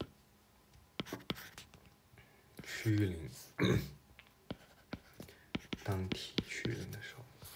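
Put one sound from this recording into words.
A stylus taps and scratches on a tablet's glass.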